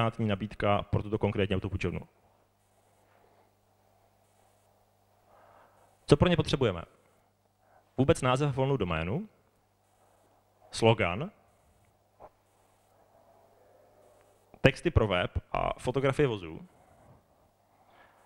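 A man speaks into a microphone in bursts with pauses, heard through loudspeakers in a large room.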